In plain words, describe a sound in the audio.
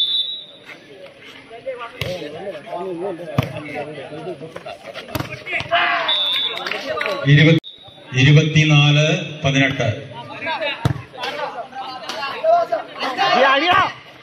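Young men shout and call out close by, outdoors.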